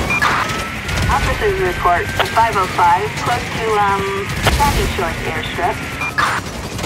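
A police siren wails and yelps.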